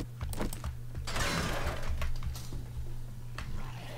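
Wooden boards crack and break apart.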